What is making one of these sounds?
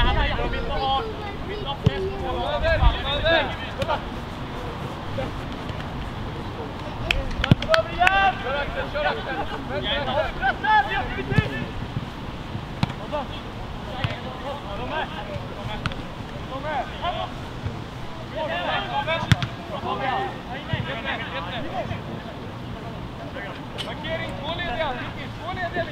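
Young men shout to each other across an open outdoor pitch.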